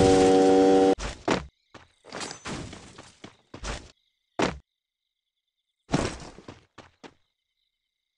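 Footsteps tread on rocky ground.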